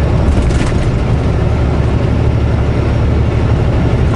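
A truck passes by close in the next lane.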